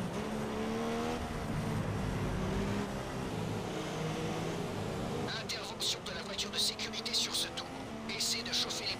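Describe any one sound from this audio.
A racing car engine whines steadily, rising and falling in pitch as it changes gear.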